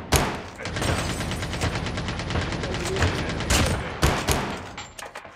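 Loud single gunshots crack.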